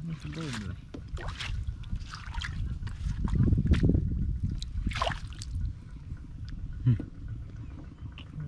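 Water sloshes and splashes in a wicker basket.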